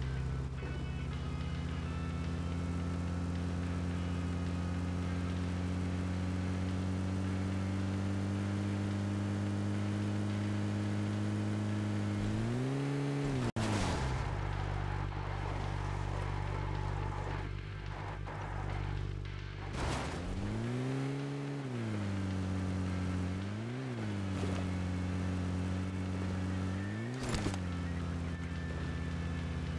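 A vehicle engine drones steadily and revs up and down as it drives over rough ground.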